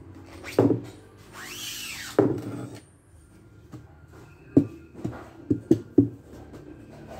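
A wooden frame knocks against a hard surface.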